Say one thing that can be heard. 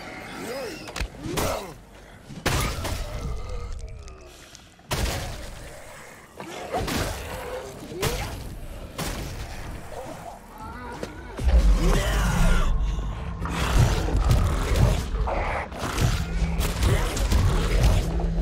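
Heavy blows thud as a metal weapon strikes bodies.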